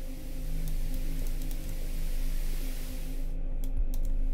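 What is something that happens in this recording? Television static hisses loudly.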